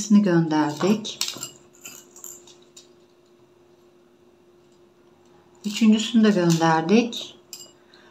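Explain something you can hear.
Small glass beads clink against a glass jar.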